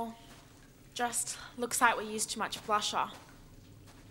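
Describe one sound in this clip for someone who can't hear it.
A second young woman answers tensely and close by.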